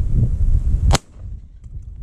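A shotgun fires a single loud shot.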